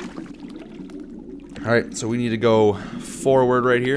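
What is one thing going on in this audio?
Air bubbles gurgle up through water.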